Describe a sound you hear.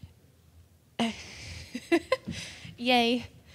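A young woman speaks cheerfully through a microphone.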